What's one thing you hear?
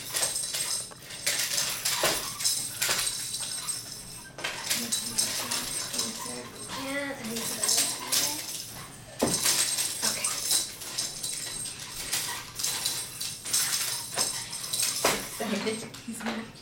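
A baby's toy rattles and clatters in bursts close by.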